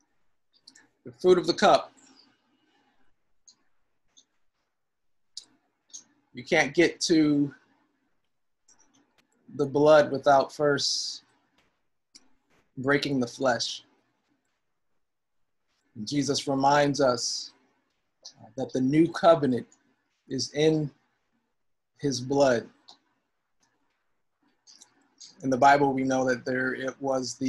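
A man speaks calmly in short phrases, close to the microphone, with pauses between.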